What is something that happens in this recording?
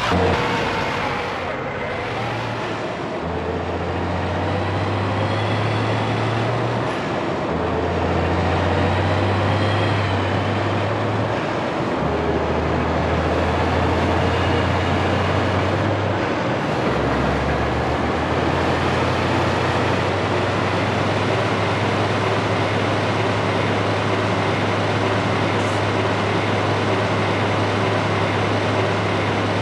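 A heavy truck engine drones and climbs in pitch, shifting up through its gears as it speeds up.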